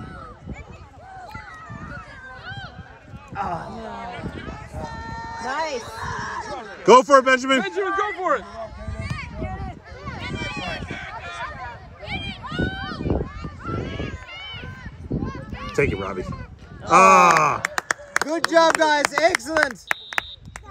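Young players call out to one another across an open field.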